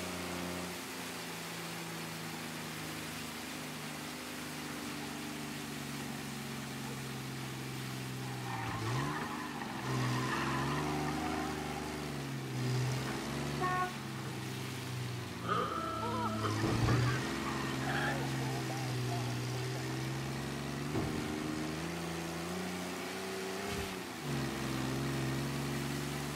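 A vintage car engine drones as the car drives.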